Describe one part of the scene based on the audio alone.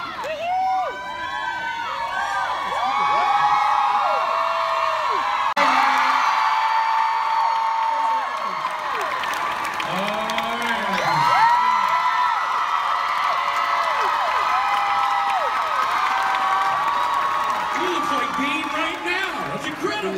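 A large crowd cheers and screams loudly in a large echoing hall.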